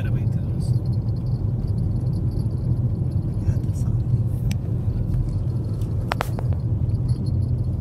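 A car drives along a paved road, its rumble heard from inside the cabin.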